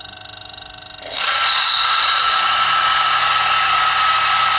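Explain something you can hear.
Coffee beans grind loudly with a harsh, steady whine.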